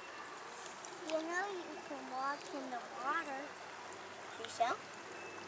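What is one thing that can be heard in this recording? Young girls talk close by.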